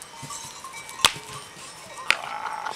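Two goats clash horns with sharp knocks.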